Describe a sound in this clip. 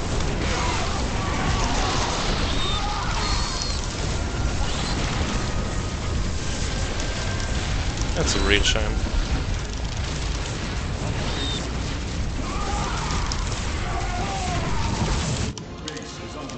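Laser weapons zap and fire rapidly in a battle.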